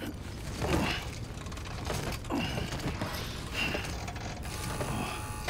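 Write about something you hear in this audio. Metal gear clanks and rattles close by.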